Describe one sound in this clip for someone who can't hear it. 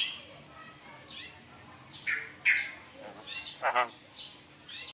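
A bird makes softer whistling chirps.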